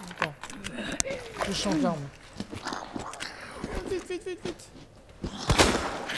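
A pistol fires with a sharp bang.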